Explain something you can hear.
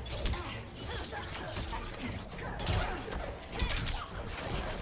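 Game blows thud and crash with impact effects.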